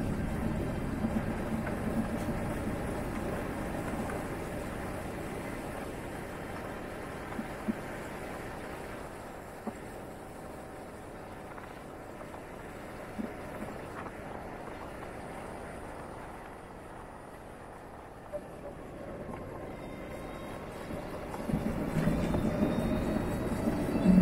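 Wind rumbles steadily past a moving scooter, loud at first, then easing.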